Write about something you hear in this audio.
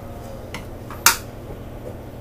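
A spoon clinks against a cup.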